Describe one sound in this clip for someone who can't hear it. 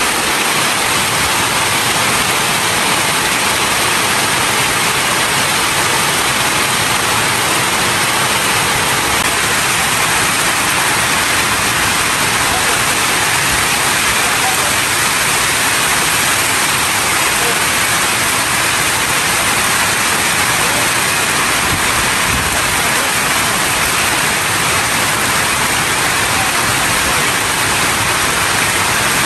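Rain patters on a roof overhead.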